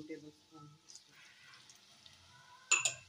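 Water pours into a simmering pot.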